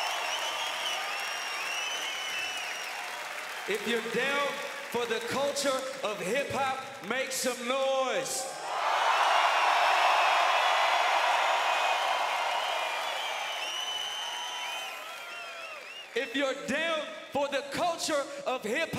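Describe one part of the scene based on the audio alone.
A large crowd cheers and whistles loudly in a big echoing hall.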